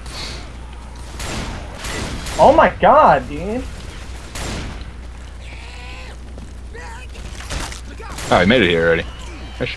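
A shotgun fires in short blasts.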